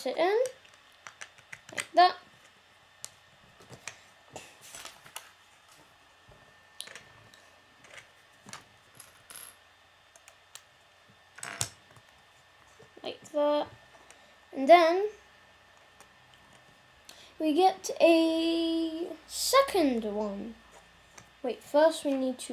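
A child talks in short bursts close by.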